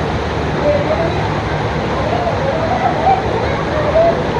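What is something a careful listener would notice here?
Water sloshes as people wade through a pool.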